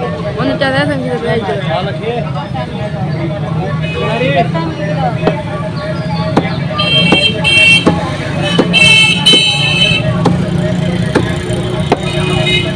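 Traffic rumbles steadily along a busy street outdoors.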